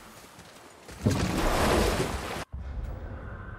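A wooden boat scrapes across gravel into water.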